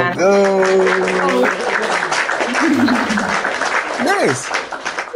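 A man sings loudly and cheerfully through an online call.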